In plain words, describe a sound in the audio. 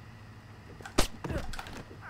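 A silenced pistol fires a single shot.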